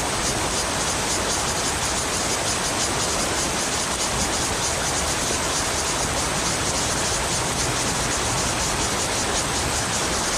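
A river rushes steadily over stones close by.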